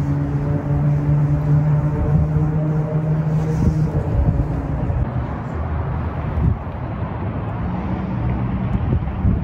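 Wind blows steadily outdoors, rumbling across the microphone.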